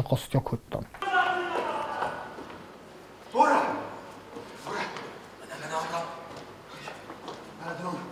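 A man's voice calls out loudly in a large echoing hall.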